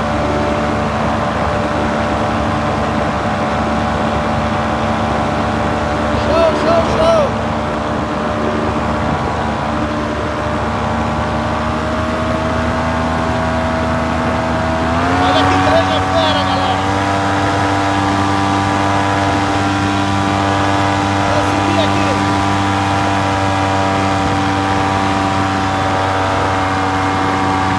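A paramotor engine drones steadily close by and rises slightly in pitch partway through.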